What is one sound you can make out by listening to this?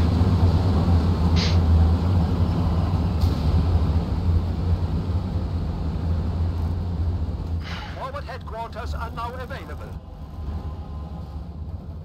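Tank engines rumble low and deep.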